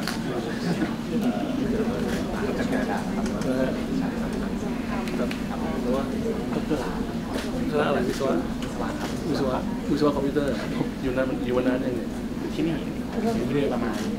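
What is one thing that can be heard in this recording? An elderly man talks in a friendly way, close by.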